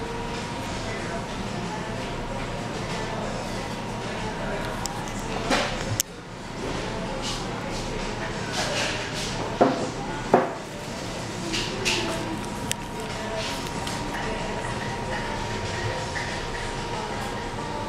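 Indistinct voices murmur in the background.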